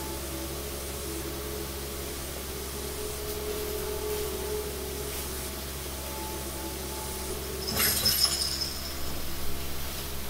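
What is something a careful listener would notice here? Music from a video game plays quietly through a television's speakers.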